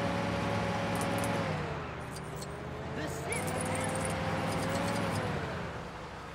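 Small coins jingle as they are collected.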